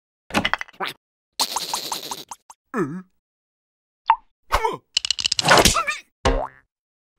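A cartoon creature babbles and squeals in a high, silly voice.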